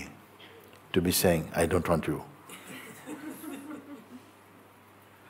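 An elderly man speaks calmly and softly, close to a microphone.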